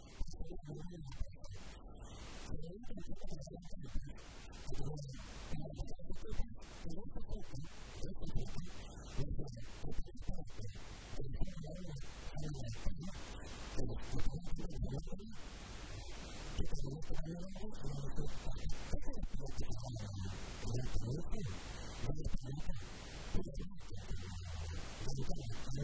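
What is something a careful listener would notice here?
A middle-aged man talks with animation into a handheld microphone.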